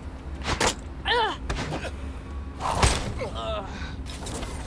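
A man grunts in pain.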